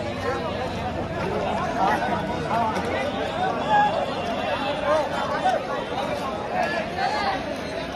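Young men shout and cheer close by.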